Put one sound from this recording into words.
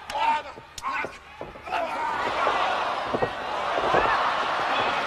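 Bodies thud and slap against a wrestling mat.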